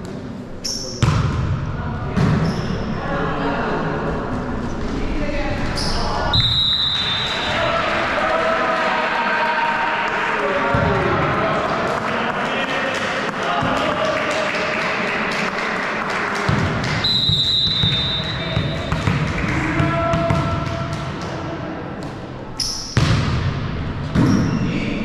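A volleyball is struck with sharp slaps in an echoing hall.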